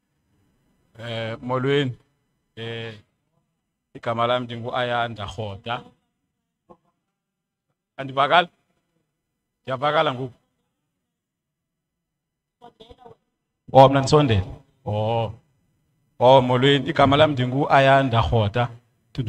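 A young man speaks into a microphone in short, deliberate phrases.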